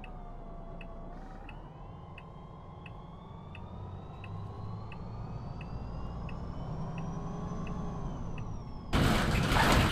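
A bus engine hums and rises in pitch as it speeds up.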